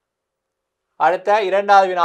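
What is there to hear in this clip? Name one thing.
A man speaks clearly and close to a microphone.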